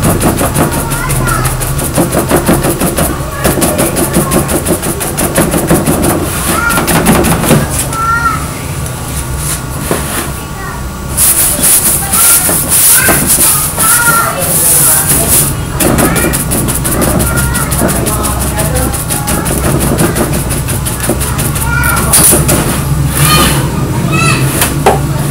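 A stiff brush scrubs rapidly across a sheet of paper.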